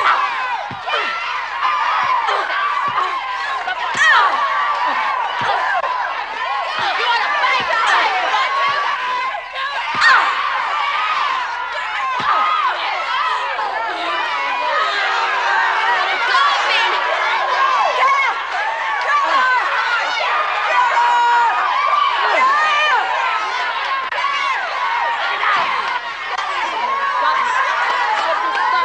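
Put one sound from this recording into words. A crowd of women cheers and shouts loudly.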